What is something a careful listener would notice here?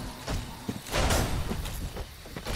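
A sword swings and clashes with metal.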